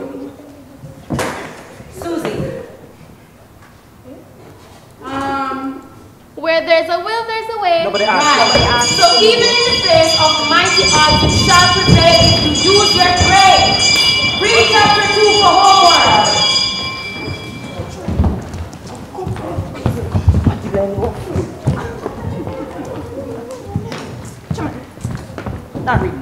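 Young women speak and call out loudly in a large hall.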